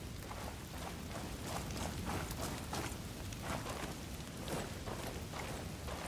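Footsteps crunch on rough ground.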